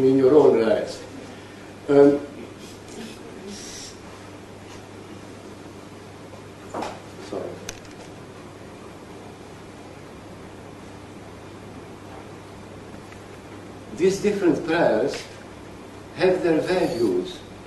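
An elderly man speaks slowly in a room with a slight echo, with long pauses.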